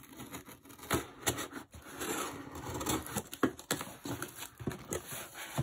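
Cardboard rustles and scrapes as hands handle a box.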